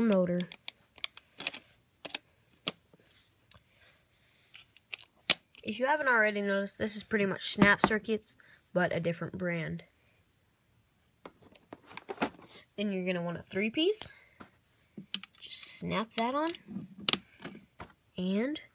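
Plastic parts snap and click together.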